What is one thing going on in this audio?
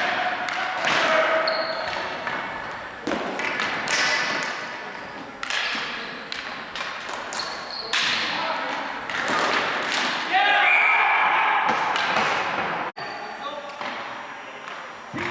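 Sticks clack against each other in a large echoing gym.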